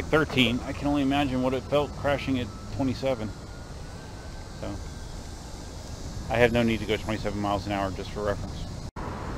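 A man speaks close by with animation.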